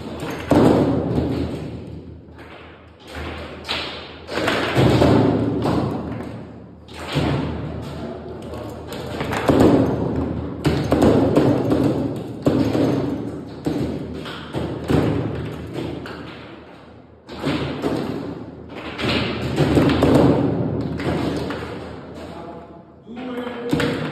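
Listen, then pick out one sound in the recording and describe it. A plastic ball knocks sharply against rods and the table sides.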